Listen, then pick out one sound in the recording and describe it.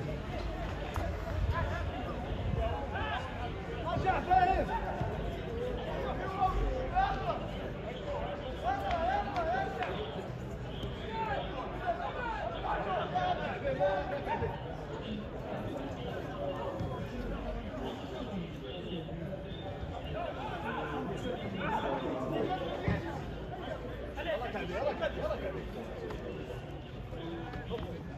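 Young men shout to each other across an open outdoor pitch.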